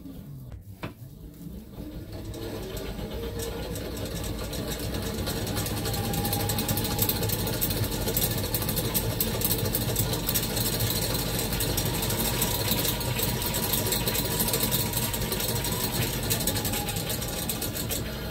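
A hoverboard hub motor whines, rising in pitch as it is driven faster.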